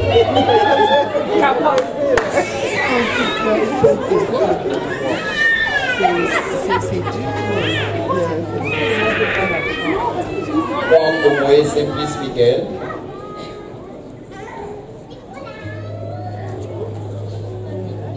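A crowd of men and women talk and cheer loudly in a large echoing hall.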